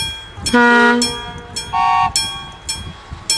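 A train horn sounds two short blasts.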